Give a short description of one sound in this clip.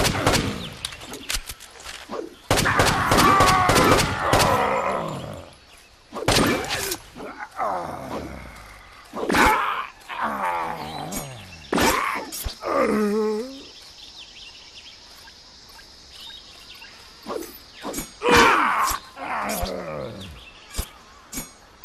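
Pistol shots crack one after another.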